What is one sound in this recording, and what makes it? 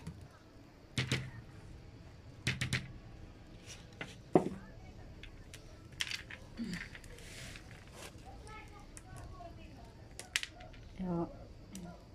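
Clay pebbles rattle and clatter against a plastic tray.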